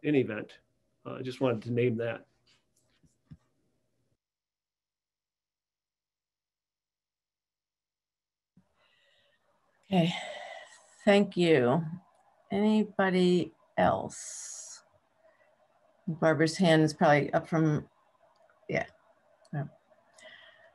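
A middle-aged woman speaks calmly over an online call, with pauses.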